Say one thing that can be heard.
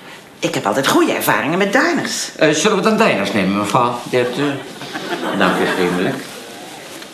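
An elderly man speaks loudly and agitatedly, close by.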